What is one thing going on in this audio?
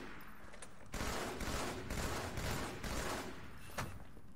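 Gunfire bursts rapidly from a video game.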